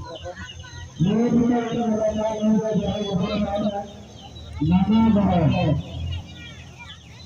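A man shouts loudly up close.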